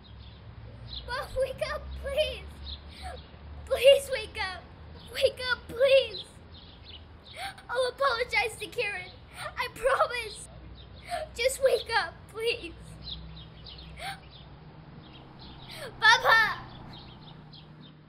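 A young girl pleads tearfully and urgently, close by.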